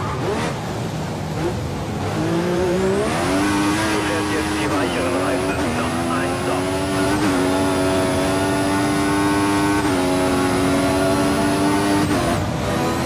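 A racing car engine screams, rising in pitch through the gears with brief dips at each shift.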